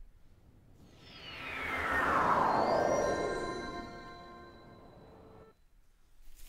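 A shimmering magical whoosh sweeps downward in pitch.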